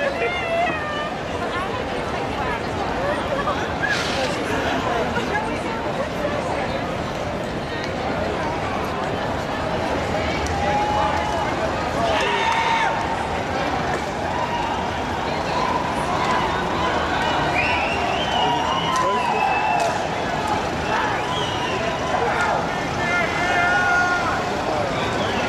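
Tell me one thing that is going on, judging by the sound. A large crowd chatters and calls out nearby, outdoors.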